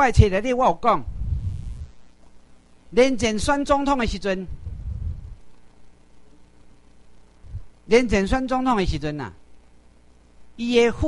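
A middle-aged man speaks into a microphone in short bursts with pauses.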